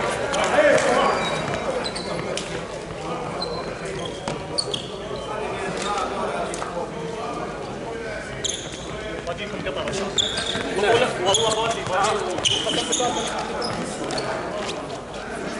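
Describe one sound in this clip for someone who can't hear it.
Men call out and talk across a large echoing hall.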